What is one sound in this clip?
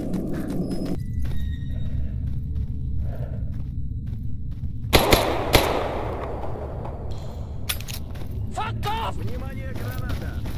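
Footsteps thud on a hard concrete floor.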